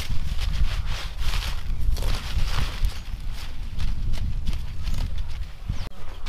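A knife cuts through lettuce stems.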